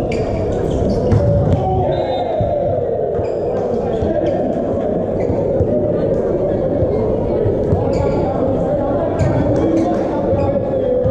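A volleyball is struck in a large echoing indoor hall.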